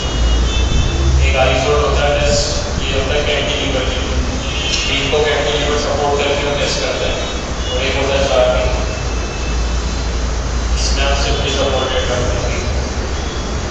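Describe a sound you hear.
A man explains in a calm, lecturing voice, heard close through a microphone.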